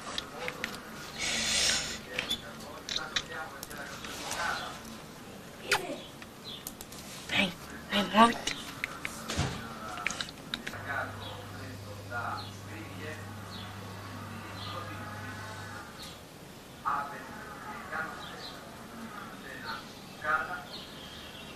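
A young bird chirps and squeaks up close.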